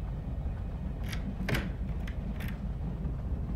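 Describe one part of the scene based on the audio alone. A key scrapes and clicks into a lock.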